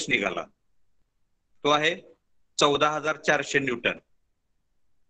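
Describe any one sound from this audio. A man speaks calmly through an online call, explaining in short bursts.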